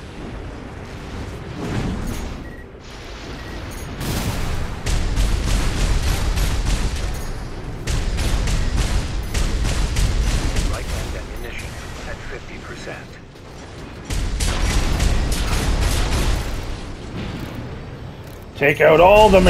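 A jet thruster roars and hisses.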